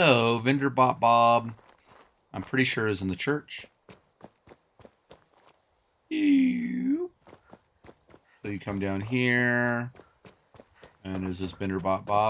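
Footsteps tread on a hard road surface.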